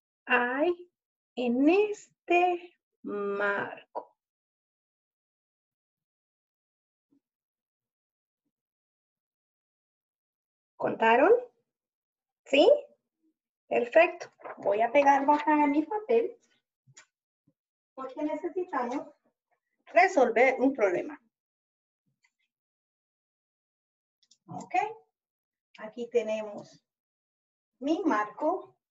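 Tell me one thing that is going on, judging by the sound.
A woman speaks clearly and slowly, close to a microphone, with pauses between phrases.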